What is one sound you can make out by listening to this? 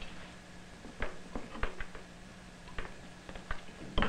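A small device clicks and knocks as a man handles it.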